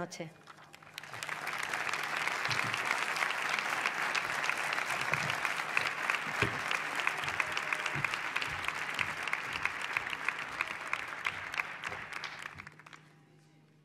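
An audience applauds steadily, then fades out.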